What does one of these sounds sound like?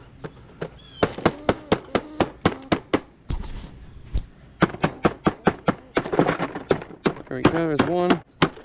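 A wire cage trap rattles and clinks against metal.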